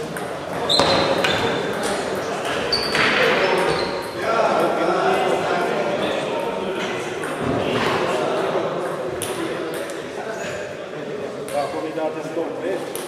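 Table tennis balls click on tables and paddles in a large echoing hall.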